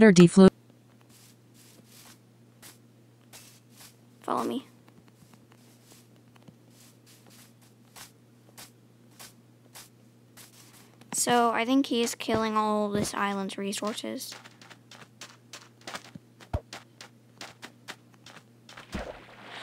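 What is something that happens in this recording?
Footsteps patter softly on grass and sand.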